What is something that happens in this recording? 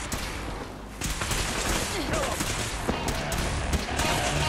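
Laser beams fire with sharp zapping bursts.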